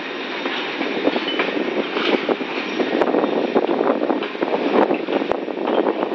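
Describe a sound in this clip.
Train wheels clatter and squeal over rail joints.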